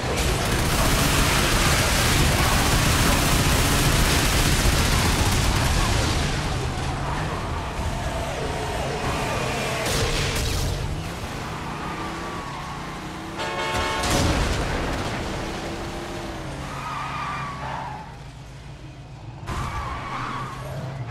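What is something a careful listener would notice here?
A car engine roars steadily.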